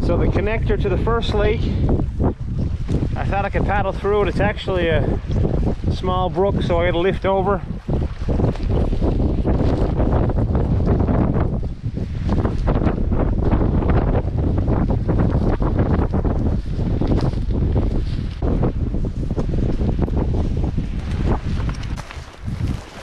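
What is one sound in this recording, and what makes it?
Footsteps rustle and crunch through low brush.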